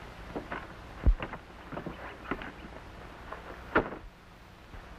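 A wooden door knocks shut.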